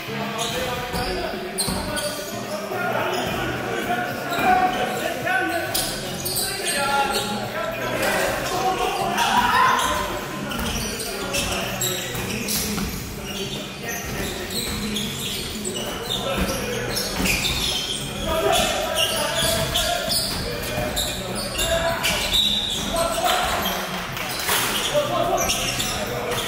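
Men shout and call out across an echoing hall.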